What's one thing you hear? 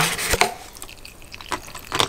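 Water pours into a cup.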